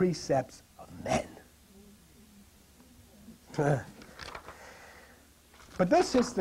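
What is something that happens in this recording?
An elderly man speaks in short bursts in a room with a slight echo.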